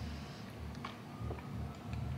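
A woman sips a drink through a straw.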